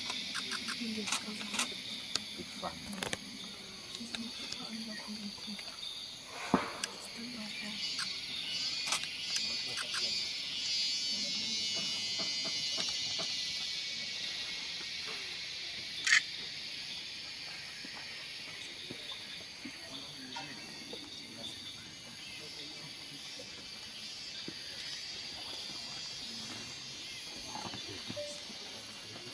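Elephants walk slowly across a paved road.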